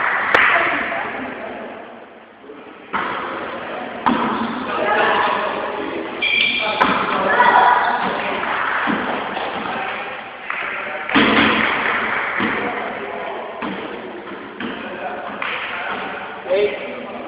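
Young men call out and shout during play in an echoing hall.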